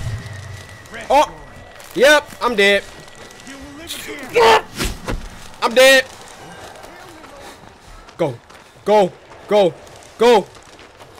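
A young man talks loudly and with animation into a close microphone.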